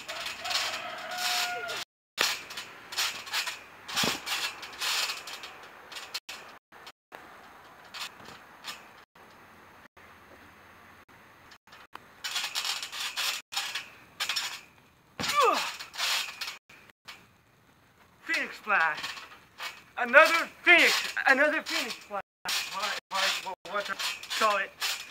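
A trampoline mat thumps and creaks under jumping feet.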